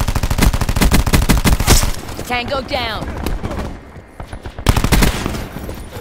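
An automatic rifle fires rapid shots.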